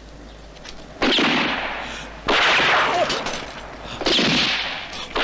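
Gunshots ring out loudly and echo off stone walls.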